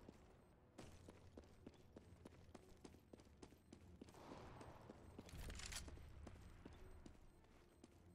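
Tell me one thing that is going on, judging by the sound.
Footsteps thud quickly and evenly on a hard floor.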